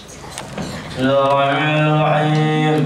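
A group of young men chant together in a steady, sustained melody.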